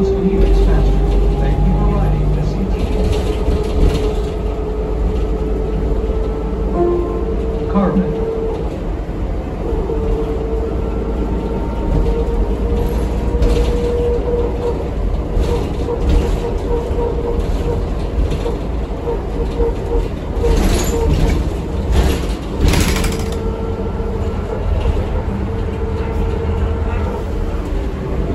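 A bus engine rumbles low and steady while the bus drives along.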